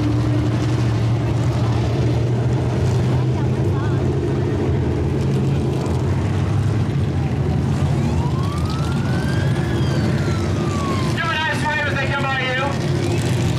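Race car engines rumble and roar loudly around a dirt track outdoors.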